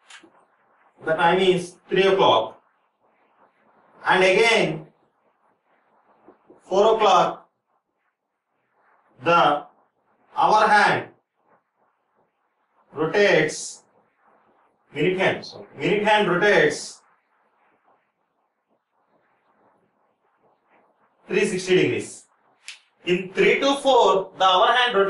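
A man explains calmly in short phrases, close by.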